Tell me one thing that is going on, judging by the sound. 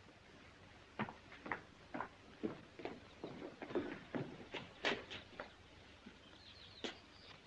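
Footsteps tap on a stone path.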